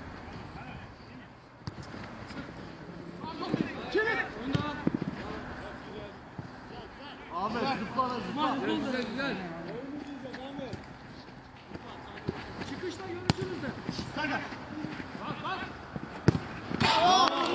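A football thuds off a player's foot.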